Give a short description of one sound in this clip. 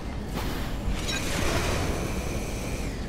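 A laser beam fires with a buzzing hum.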